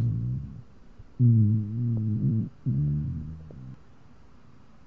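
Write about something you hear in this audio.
A man growls low and rumbling, close up.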